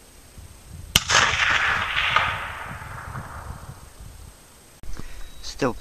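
A hanging steel target rings after a bullet strike.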